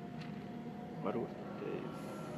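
A sliding metal gate stops with a clank.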